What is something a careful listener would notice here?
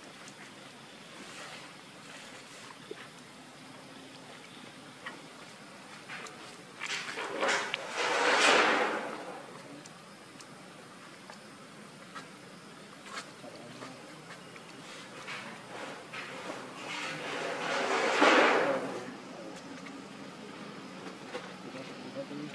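Monkeys rustle softly as they groom each other.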